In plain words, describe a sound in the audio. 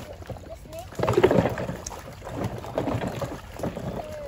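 Water splashes as a person wades through a shallow stream.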